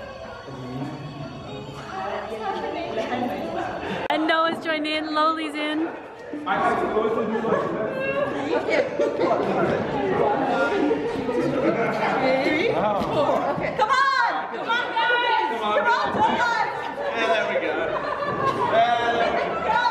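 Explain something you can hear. A group of young men and women sing together loudly nearby.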